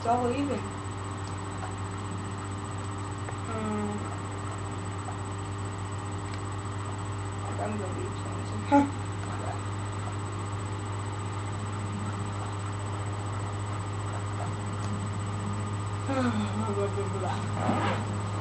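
A low, steady hum drones from a television.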